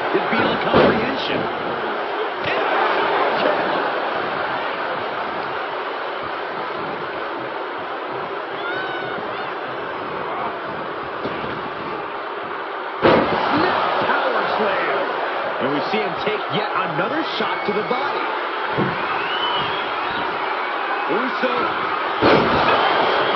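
Heavy thuds sound as wrestlers slam onto the ring mat.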